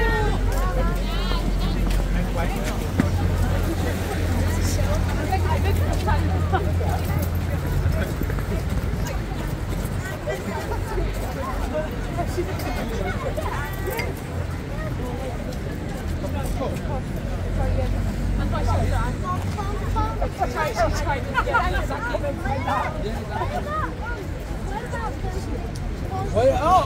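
A crowd of people chatters close by, outdoors.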